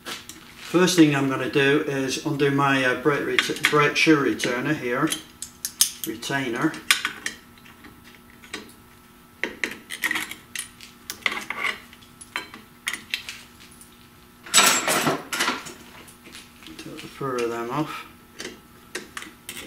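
Metal pliers click and scrape against a brake spring.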